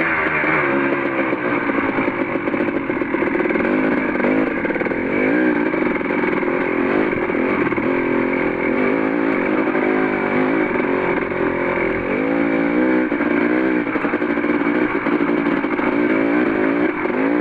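Tyres crunch over rocks and dry leaves.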